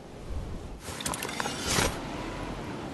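A glider umbrella snaps open with a loud whoosh.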